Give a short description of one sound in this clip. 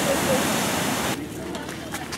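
Waves wash and break against rocks.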